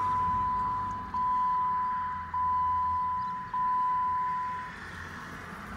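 A car's warning chime beeps in a steady, repeating tone, then stops.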